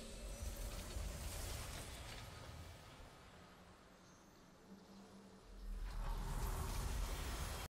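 A triumphant game victory fanfare plays with booming low notes.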